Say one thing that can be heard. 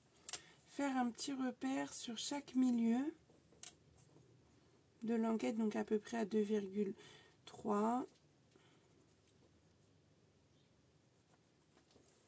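A pencil scratches along a ruler.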